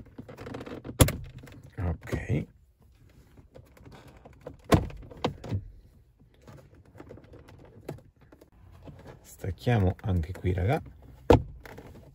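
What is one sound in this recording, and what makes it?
A gear lever clunks and clicks into place.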